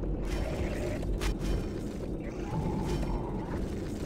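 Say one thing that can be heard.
Wooden crates smash and clatter.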